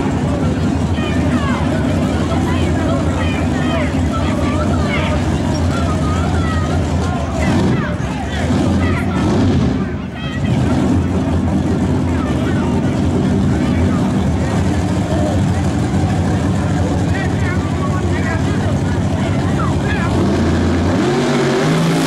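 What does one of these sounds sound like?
A drag racing engine idles with a loud, deep rumble.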